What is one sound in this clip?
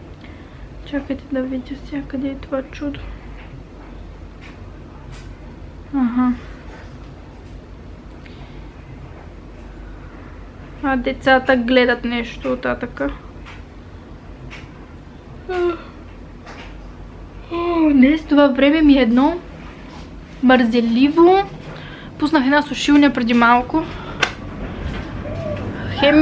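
A young woman speaks quietly and close to the microphone.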